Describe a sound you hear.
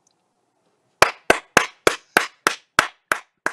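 A woman claps her hands steadily over an online call.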